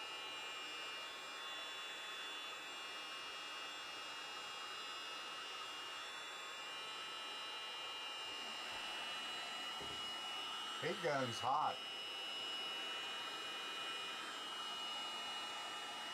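A heat gun blows with a steady whirring hum.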